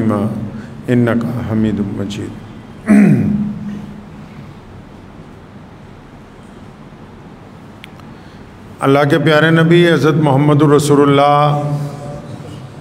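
A man speaks into a microphone in a slow, chanting voice, with a pause in between.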